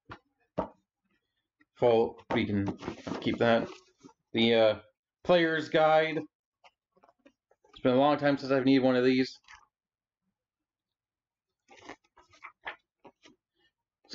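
Pages and cardboard rustle softly as a man handles a book.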